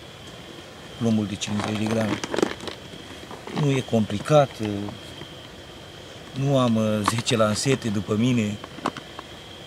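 A middle-aged man speaks calmly, close by, in short phrases.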